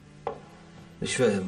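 A man speaks sharply, close by.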